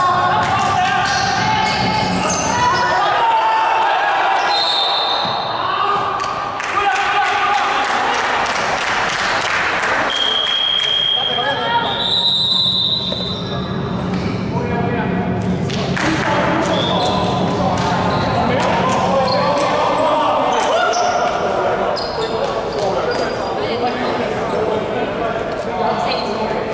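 Young men talk and call out among themselves in a large echoing gym.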